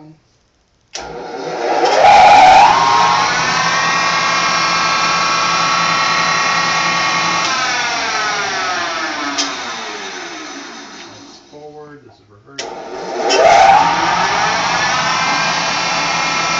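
A milling machine motor starts with a click and whirs up to speed.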